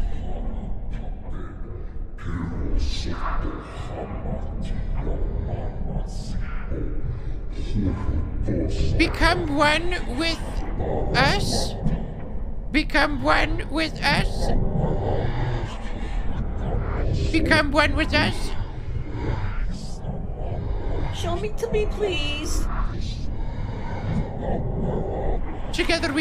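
An elderly woman speaks expressively into a close microphone.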